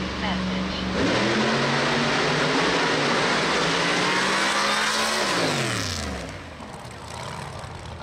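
A drag racing car roars away at full throttle and fades into the distance.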